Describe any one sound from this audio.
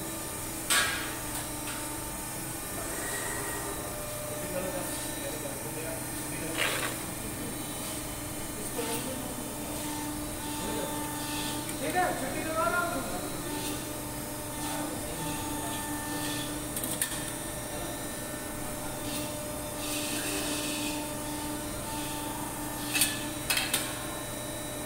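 A press brake clanks as it bends sheet metal.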